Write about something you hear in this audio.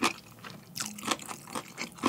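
Chopsticks click against a ceramic bowl.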